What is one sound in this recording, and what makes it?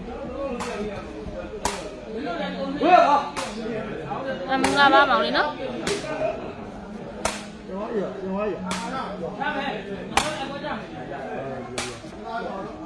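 A rattan sepak takraw ball is kicked with sharp smacks.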